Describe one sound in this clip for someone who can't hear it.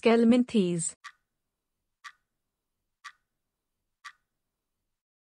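A countdown timer ticks once a second.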